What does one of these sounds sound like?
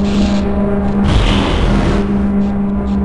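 A teleporter bursts with a loud rushing whoosh.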